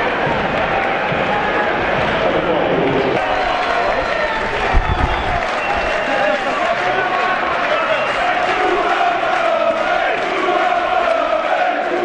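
A large crowd cheers and chants in an open stadium.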